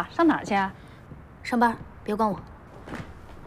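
A woman speaks sharply nearby.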